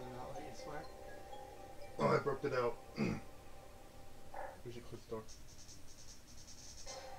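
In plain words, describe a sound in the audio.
Video game music and sound effects play from a television speaker.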